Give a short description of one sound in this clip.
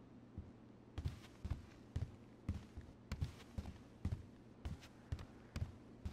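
Footsteps tap steadily on a hard floor indoors.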